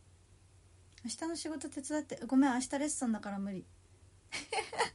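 A young woman speaks softly and with expression, close to a microphone.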